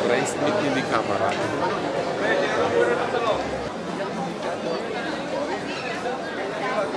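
A crowd of people chatter in the open air.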